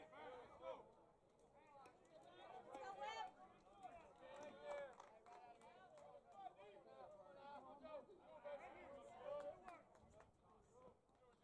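Baseball players shout and call out across an open field.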